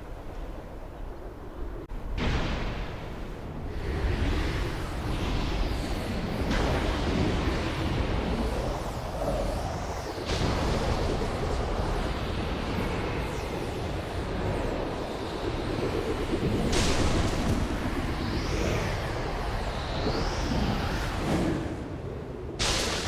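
Wind rushes and whooshes loudly past in gusts.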